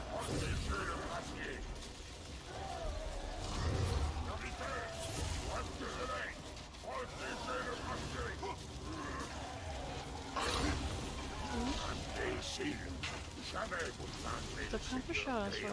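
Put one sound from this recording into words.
Keyboard keys click under quick typing.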